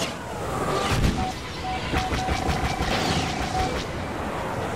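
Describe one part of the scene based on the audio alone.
A warning tone beeps repeatedly.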